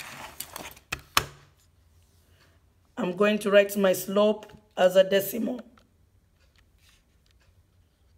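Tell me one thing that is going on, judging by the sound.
Calculator buttons click as they are pressed.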